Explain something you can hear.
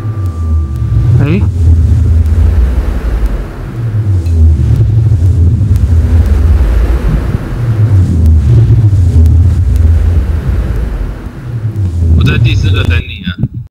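Lava rumbles deeply and steadily.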